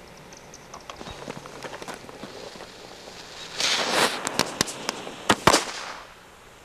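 Fireworks crackle and pop in quick bursts.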